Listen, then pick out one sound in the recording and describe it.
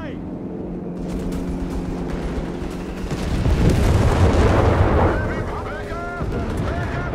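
Gunfire crackles in short bursts.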